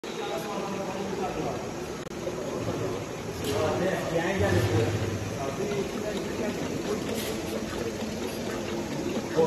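Packaging machinery hums and rattles steadily.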